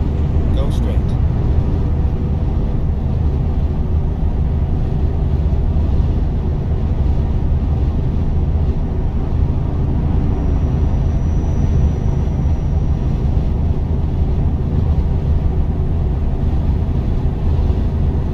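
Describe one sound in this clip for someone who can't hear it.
A truck engine rumbles steadily at speed.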